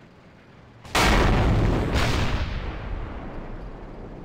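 A tank cannon fires with a loud boom that slowly fades.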